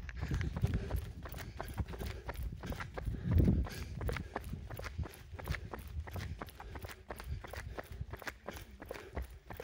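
Footsteps tap on a paved road close by.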